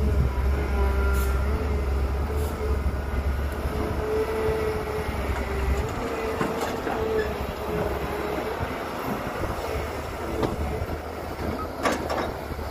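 A diesel excavator engine rumbles and whines steadily close by.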